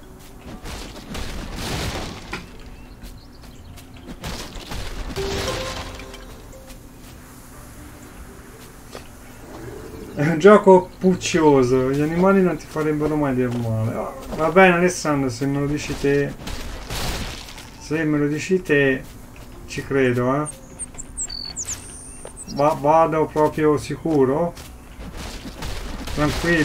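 An axe chops into wood.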